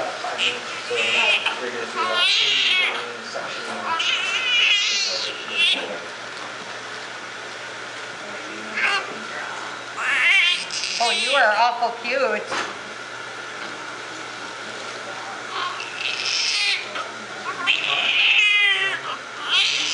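A newborn baby cries loudly in high, broken wails.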